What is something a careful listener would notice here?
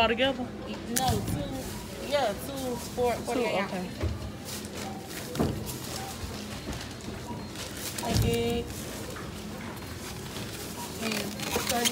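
Plastic bottles thud down onto a checkout belt.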